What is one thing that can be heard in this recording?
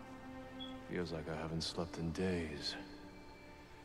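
A man sighs deeply.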